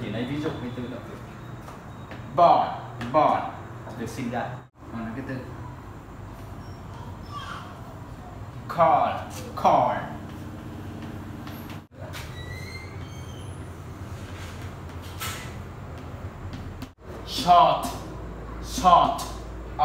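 Chalk scratches and taps on a blackboard.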